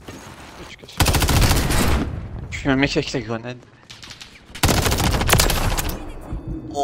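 A rifle fires rapid bursts, loud and close.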